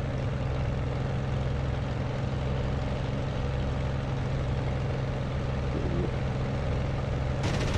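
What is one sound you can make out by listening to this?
A propeller aircraft engine drones steadily with a low hum.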